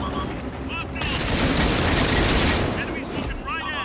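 A tank cannon fires with a loud blast.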